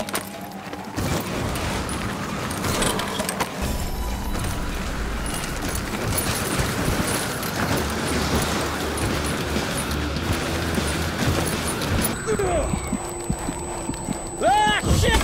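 Skis hiss and scrape over snow at speed.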